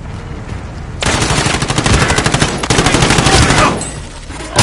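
An automatic gun fires in rapid bursts.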